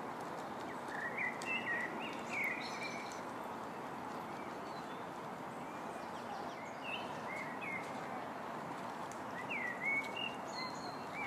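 Ducklings peep in high, short chirps.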